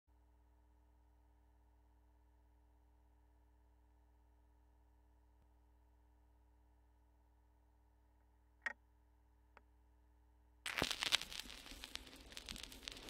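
A record player hums steadily.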